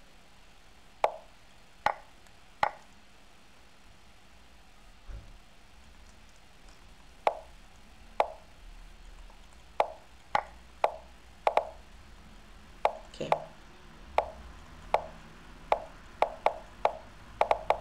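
Short sharp clicks of chess pieces being moved sound again and again, faster toward the end.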